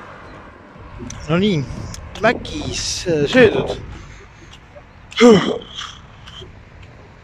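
A young man talks calmly and close up, outdoors.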